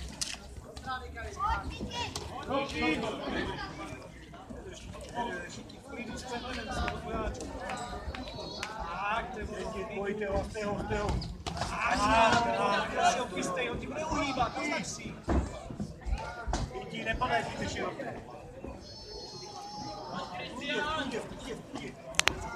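Several men and women talk and call out nearby, outdoors.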